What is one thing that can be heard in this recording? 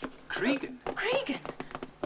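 Footsteps pound quickly up stairs.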